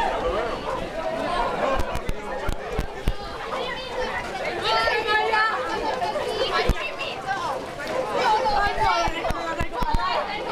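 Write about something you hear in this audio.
A crowd of men and women chatters and calls out outdoors.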